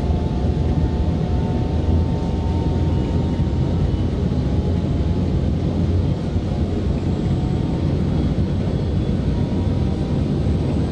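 An electric train motor hums steadily.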